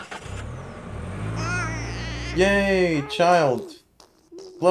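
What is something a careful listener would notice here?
A baby coos and babbles.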